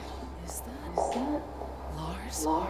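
A young woman asks a question quietly.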